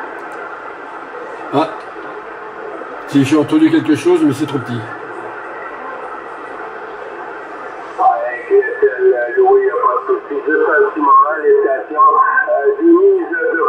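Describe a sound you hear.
Radio static hisses steadily from a loudspeaker.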